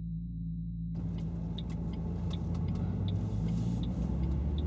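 Raindrops patter on a windshield.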